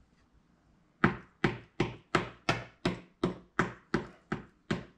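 A wooden mallet thumps clay in quick, steady blows.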